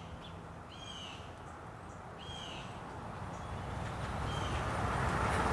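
A bird gives short, sharp calls close by.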